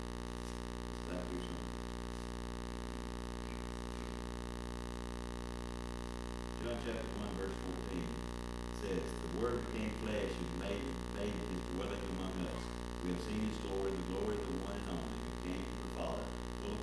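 An elderly man speaks calmly into a microphone, heard through loudspeakers in an echoing hall.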